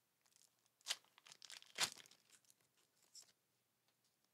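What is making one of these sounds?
Playing cards rustle and flick as they are handled.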